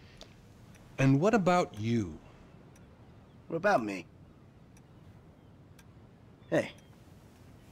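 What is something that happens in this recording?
A second man answers calmly.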